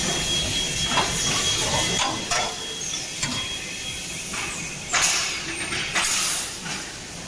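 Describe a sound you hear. Wooden pallets knock against each other as they are stacked.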